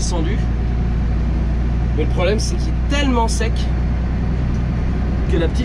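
A tractor engine hums steadily inside a cab.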